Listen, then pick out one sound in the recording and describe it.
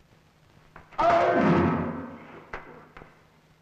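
A young woman speaks loudly and urgently.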